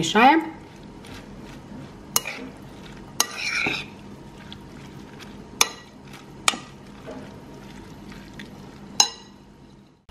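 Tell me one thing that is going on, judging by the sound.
A fork clinks against a glass bowl while tossing a salad.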